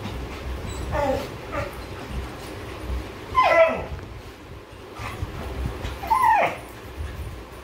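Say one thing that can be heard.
A dog yelps and whines.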